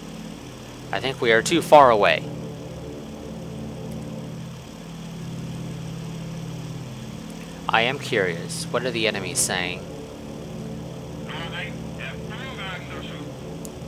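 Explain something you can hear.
A propeller plane's engines drone steadily.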